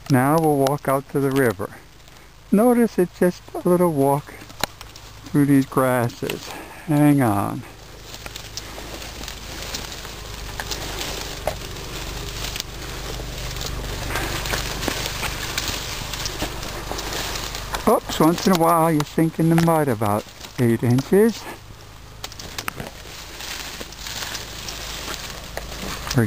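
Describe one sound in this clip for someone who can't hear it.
Tall grass rustles and swishes as someone pushes through it.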